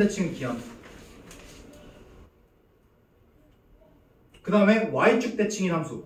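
A young man speaks calmly into a microphone, with pauses, in a slightly echoing room.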